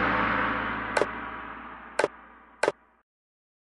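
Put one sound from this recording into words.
Short interface clicks sound a few times.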